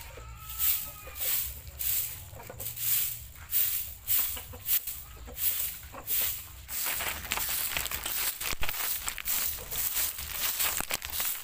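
A stiff broom sweeps dirt in quick, rhythmic swishes.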